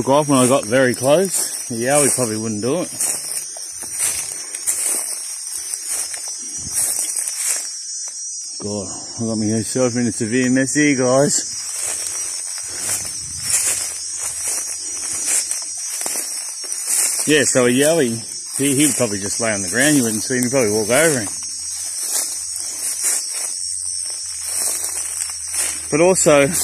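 Footsteps crunch through dry leaves and twigs.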